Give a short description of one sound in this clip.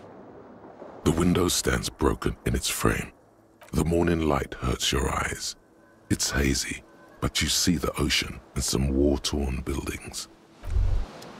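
A man speaks in a low, steady voice close to a microphone.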